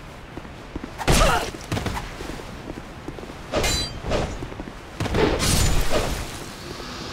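Swords clash and strike with heavy thuds.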